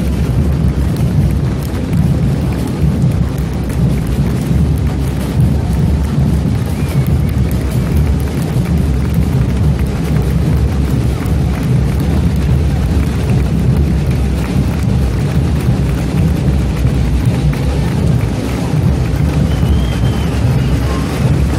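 A large outdoor crowd murmurs and chatters.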